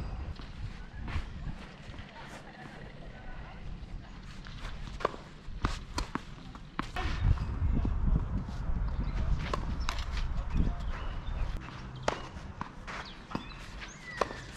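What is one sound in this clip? Footsteps scuff across a clay court.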